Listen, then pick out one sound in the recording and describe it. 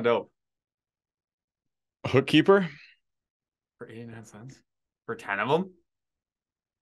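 A man talks calmly into a close microphone, in short phrases with pauses.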